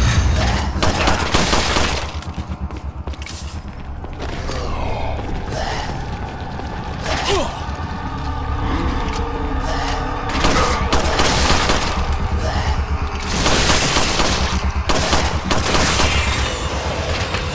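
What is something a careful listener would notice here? Pistol shots ring out, echoing loudly.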